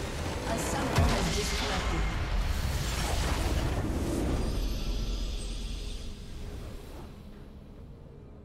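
A huge crystal shatters with a loud blast that slowly fades.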